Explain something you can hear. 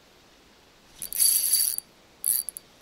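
A fishing line whizzes out as a rod is cast.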